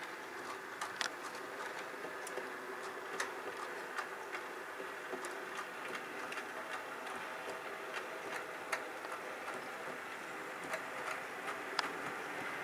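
Model train wheels click over rail joints.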